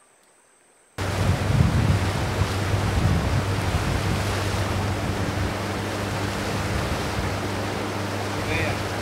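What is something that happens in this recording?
Wind rushes past outdoors on open water.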